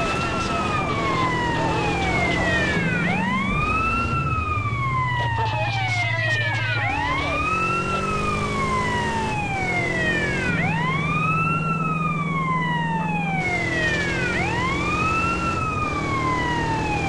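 A police siren wails up and down over and over.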